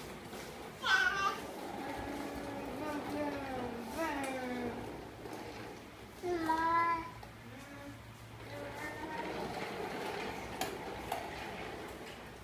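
A plastic ride-on toy scrapes across a hard floor.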